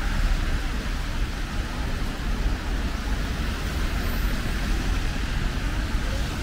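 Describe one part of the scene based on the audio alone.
Car tyres hiss on the wet road.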